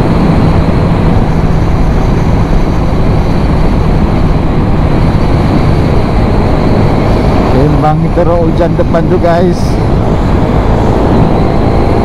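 A scooter engine hums steadily.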